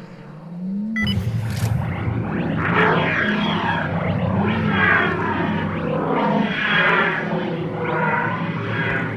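A loud churning mechanical roar starts suddenly and goes on.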